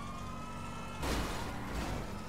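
A car crashes into another car with a loud thud.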